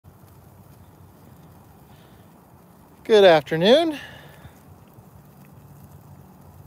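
A fire crackles and roars steadily.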